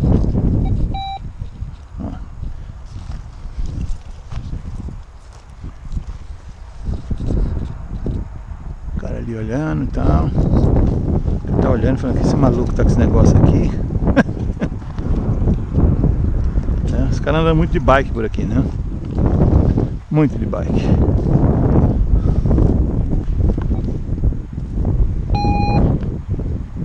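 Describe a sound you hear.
A metal detector gives short electronic beeps.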